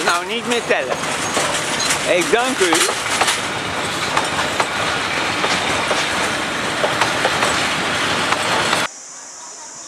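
A passenger train rolls past close by with a loud rattling rumble.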